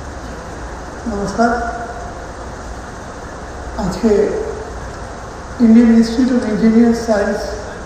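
An elderly man speaks calmly through a microphone and loudspeakers.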